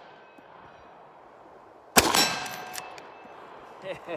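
A lever-action rifle is cycled with a metallic clack.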